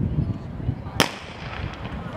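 A starting pistol fires with a sharp crack.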